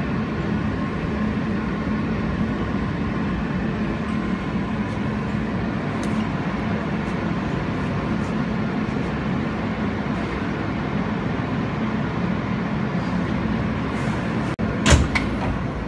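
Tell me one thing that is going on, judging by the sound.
A subway train rumbles steadily along the tracks and slows to a stop.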